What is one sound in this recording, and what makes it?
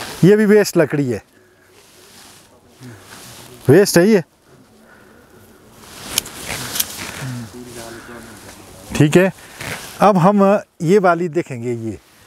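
Pruning shears snip a branch with a sharp click.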